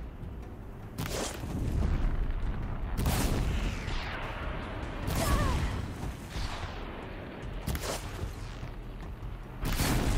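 Explosions burst loudly, one after another.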